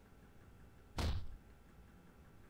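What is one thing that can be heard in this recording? A body thuds heavily onto a floor.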